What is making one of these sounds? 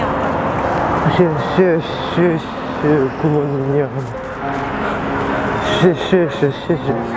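An elderly man speaks warmly nearby.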